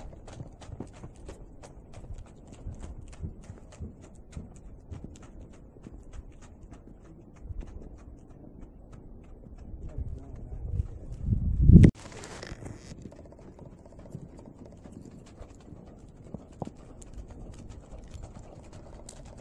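A horse's hooves thud softly on snow in a steady trotting rhythm.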